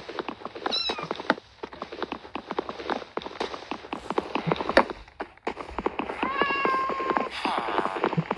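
Wooden blocks are struck with quick, repeated knocks and break apart.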